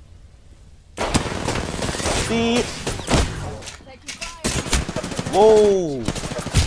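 Gunfire rattles in rapid bursts, loud and close.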